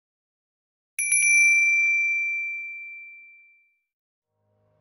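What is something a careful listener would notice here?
A magic sword rings out with a bright, fading chime.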